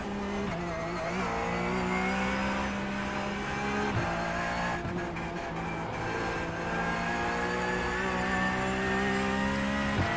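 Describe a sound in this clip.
A racing car engine drones loudly, its pitch climbing and dropping with gear changes.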